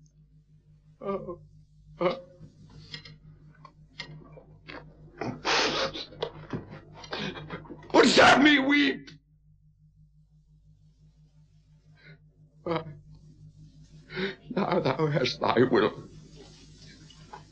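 An elderly man sobs and cries out in anguish.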